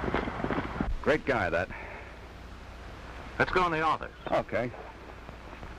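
A man speaks cheerfully, close by.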